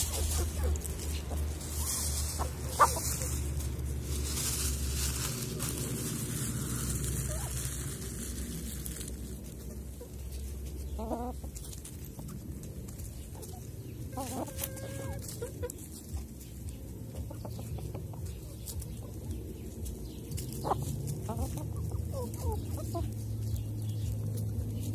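Hens cluck softly close by.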